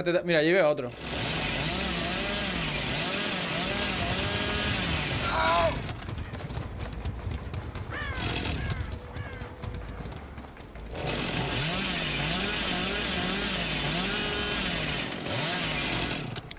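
A chainsaw engine idles and revs in waves.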